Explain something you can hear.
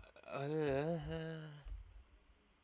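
A man makes a wavering, sung vocal sound up close.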